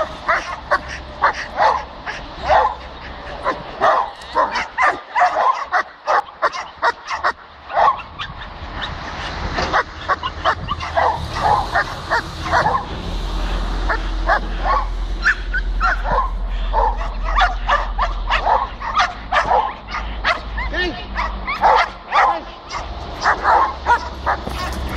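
Dogs bark loudly and repeatedly outdoors.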